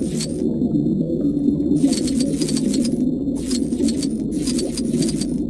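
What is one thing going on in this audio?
A deep underwater rumble hums steadily.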